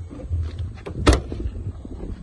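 A car boot lid slams shut with a loud thud.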